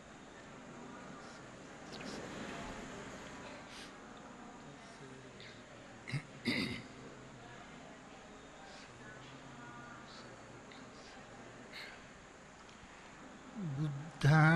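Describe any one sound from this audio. A crowd of people murmurs prayers softly.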